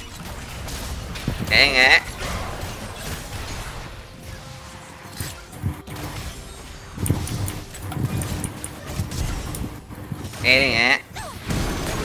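Fantasy battle sounds whoosh, crackle and thud as spells are cast.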